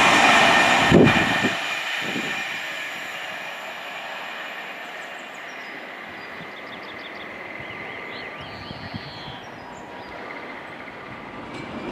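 A train rushes past close by with a loud whoosh that fades.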